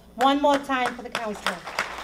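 An elderly woman claps her hands.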